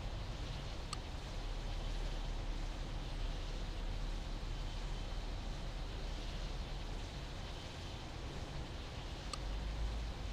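A short electronic click sounds as a button is tapped.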